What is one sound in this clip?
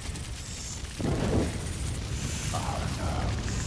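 A fire bursts into flame with a whoosh.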